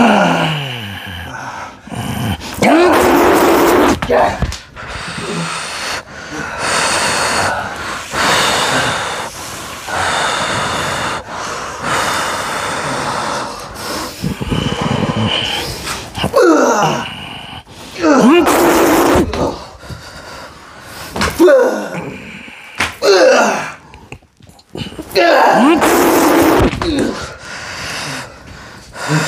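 A man speaks firmly and loudly nearby.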